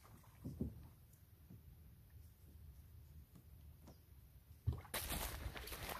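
A pole splashes softly in water as a boat is pushed along.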